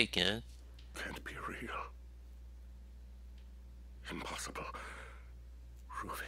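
A middle-aged man answers weakly and haltingly, close by.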